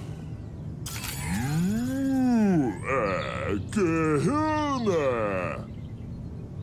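A sci-fi energy beam warbles and zaps.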